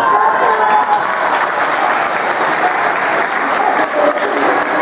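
People clap their hands.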